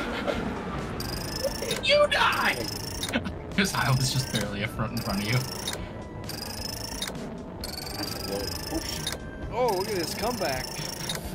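Game score tallies tick upward with quick chimes.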